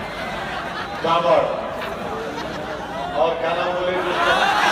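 A man shouts forcefully into a microphone, heard through loudspeakers.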